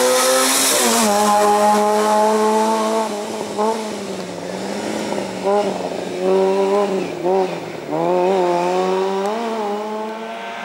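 A car engine drops and rises in pitch as gears shift through bends.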